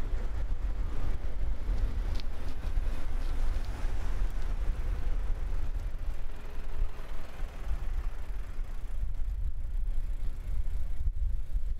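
Wind buffets outdoors with a low rumble.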